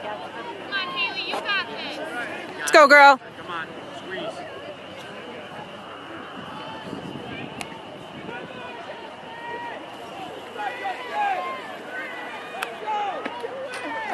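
A crowd of young people chatters and calls out in the distance outdoors.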